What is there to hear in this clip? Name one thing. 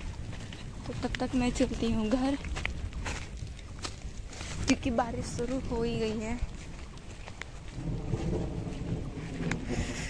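Footsteps brush through grass.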